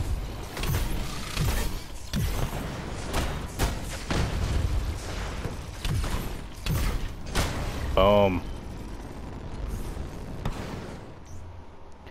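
Metal blows and blasts crash and clang in quick bursts.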